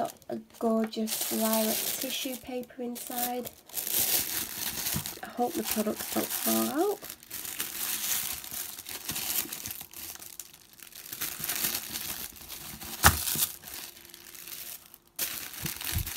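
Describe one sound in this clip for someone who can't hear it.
Tissue paper rustles and crinkles as hands move it.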